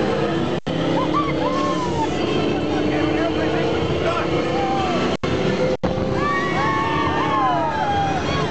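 Young women scream and cheer excitedly nearby.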